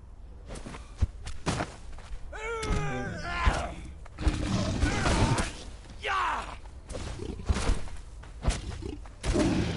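Blows strike with heavy thuds.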